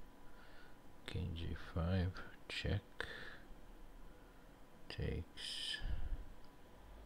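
A middle-aged man speaks calmly into a close headset microphone.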